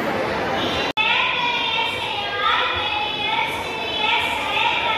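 A young girl speaks into a microphone through loudspeakers in an echoing hall.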